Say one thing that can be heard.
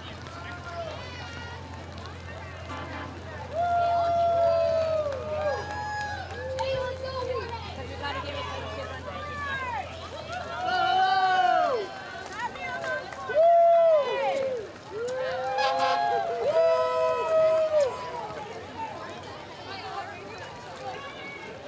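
A crowd of people chatters and cheers outdoors.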